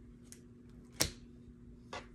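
A card taps down onto a table.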